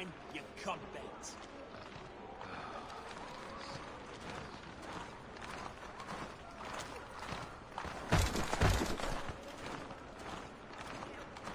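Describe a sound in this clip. Footsteps crunch steadily on snowy ground.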